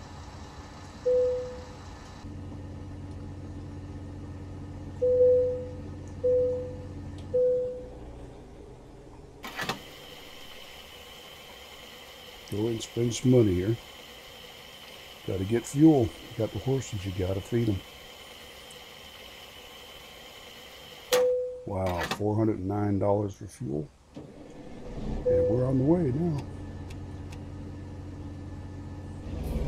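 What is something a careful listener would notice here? A truck engine idles with a low, steady hum.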